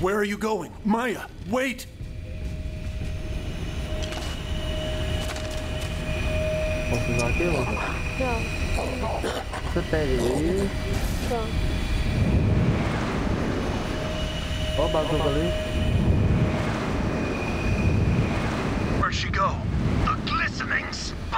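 A young man talks and laughs into a nearby microphone.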